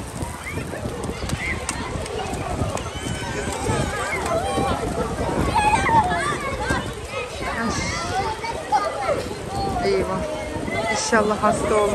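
Children shout and laugh playfully nearby.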